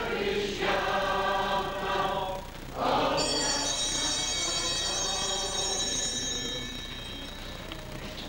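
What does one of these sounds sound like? A man sings a slow, sustained chant in an echoing hall.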